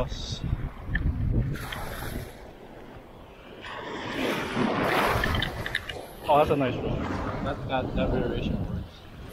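Small waves splash and lap close by.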